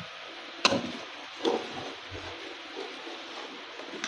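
A ladle stirs thick liquid in a metal pot.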